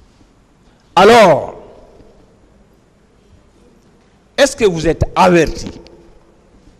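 A man speaks into a microphone in short bursts.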